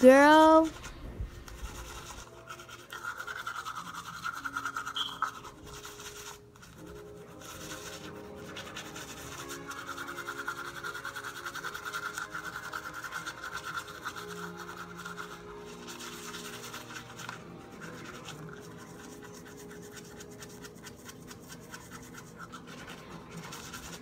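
A toothbrush scrubs rapidly against teeth.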